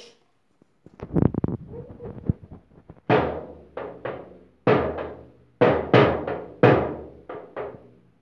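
A child beats a small drum with a stick.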